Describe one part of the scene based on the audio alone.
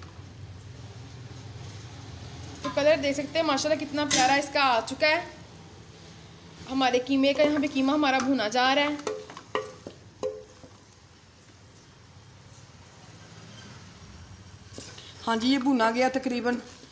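A wooden spatula scrapes and stirs food in a metal pot.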